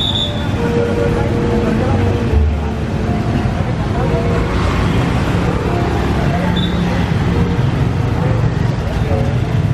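Motorbike engines hum as they pass close by.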